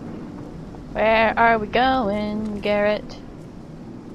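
A young woman cries out loudly close to a microphone.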